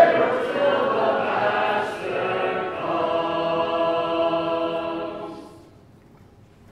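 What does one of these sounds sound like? A man sings a hymn through a microphone.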